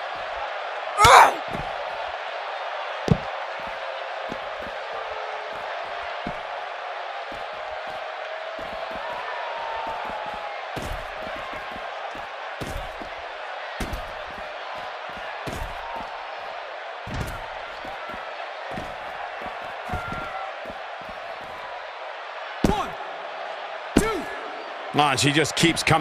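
Bodies thud heavily onto a hard floor.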